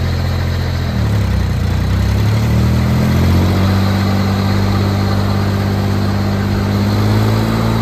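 An engine revs up and its pitch rises.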